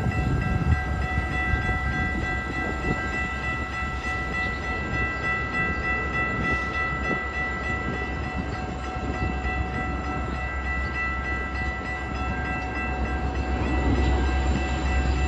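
A passenger train rolls past close by with a loud, steady rumble.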